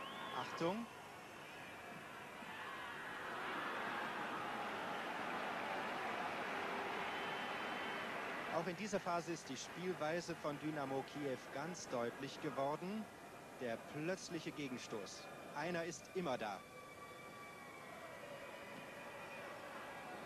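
A stadium crowd roars and swells in excitement.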